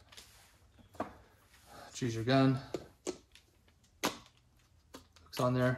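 Small metal parts click as a man handles them.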